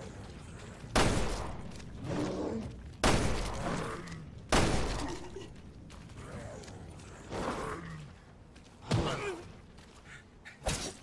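A pistol fires loud shots that echo.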